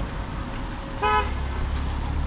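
A car horn beeps once briefly.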